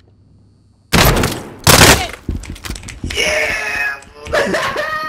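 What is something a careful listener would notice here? Rapid gunshots ring out close by.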